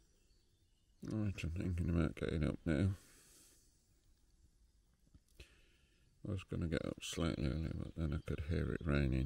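An elderly man speaks calmly and close up.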